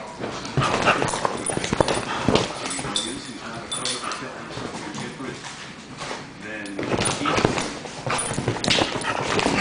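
Dogs' paws scrabble and thump on a leather couch.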